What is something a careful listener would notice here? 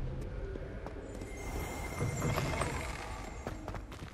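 Heavy wooden doors creak open.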